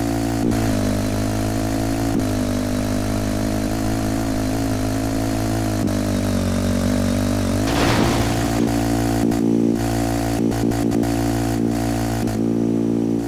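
A motorcycle engine roars steadily at high revs.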